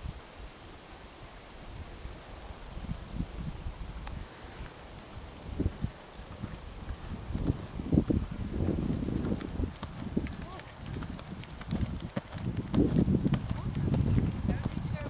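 Horse hooves thud on soft ground at a canter, growing closer.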